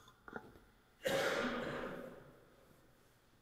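A spray bottle hisses in a short burst.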